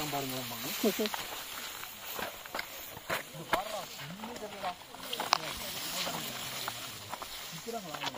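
Tall grass rustles and swishes as people push through it.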